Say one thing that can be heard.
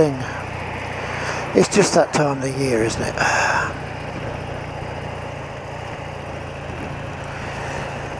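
An old BMW motorcycle engine hums steadily as it cruises along a road, heard from the rider's seat.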